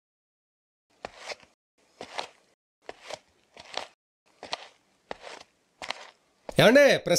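Footsteps walk at a steady pace on a hard floor.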